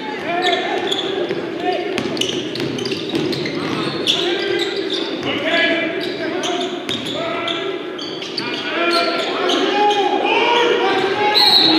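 A crowd chatters and cheers.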